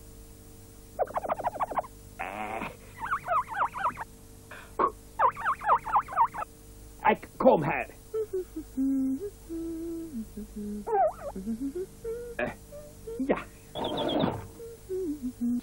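A man speaks in a high, comic cartoon voice.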